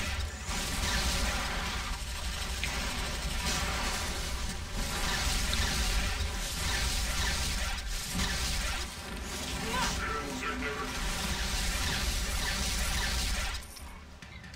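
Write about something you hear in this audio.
Explosions boom and crackle in a game's battle.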